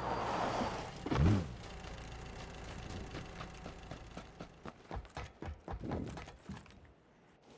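Footsteps run over dirt and then a hard floor.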